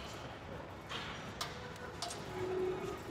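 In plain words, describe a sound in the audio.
Weight plates clank on a bench press bar.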